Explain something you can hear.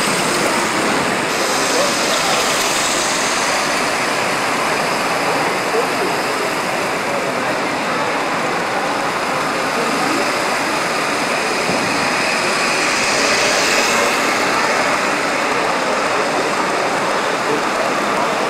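Model trains rumble and click along their tracks.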